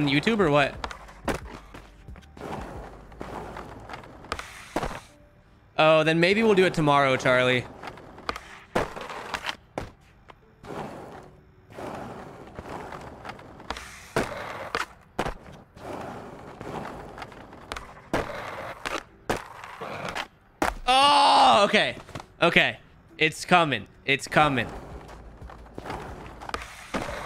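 A skateboard snaps and clacks as it lands tricks.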